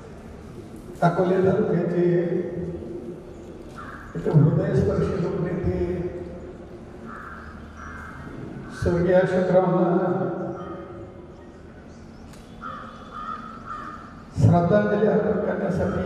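An elderly man speaks slowly and earnestly into a microphone, heard through loudspeakers.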